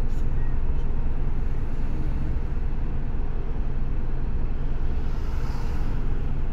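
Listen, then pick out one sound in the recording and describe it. A vehicle engine rumbles low and steady from inside the cabin.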